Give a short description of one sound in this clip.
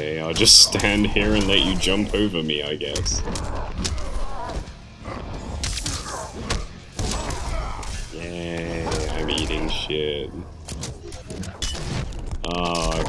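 Punches and kicks land with heavy thuds and cracks.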